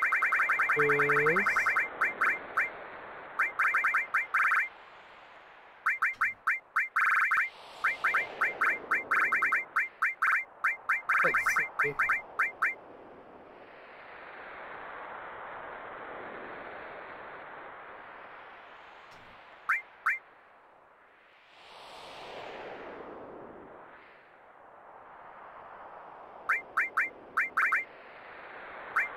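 Short electronic menu blips tick rapidly as a cursor moves through a list.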